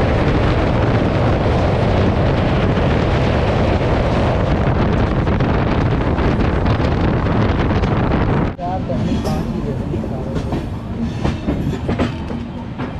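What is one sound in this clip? A train rumbles loudly along the tracks.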